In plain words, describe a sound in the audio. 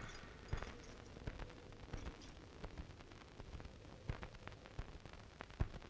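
A woman's footsteps thud on a hard floor.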